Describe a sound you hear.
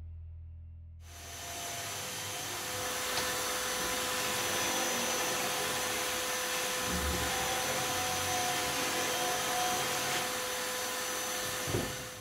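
A power tool grinds noisily along a wooden edge.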